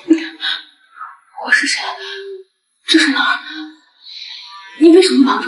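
A young woman speaks nearby in a tense voice.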